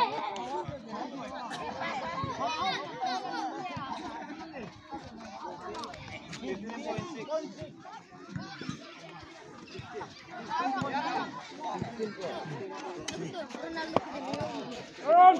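A crowd of young men and boys chatters and calls out nearby, outdoors.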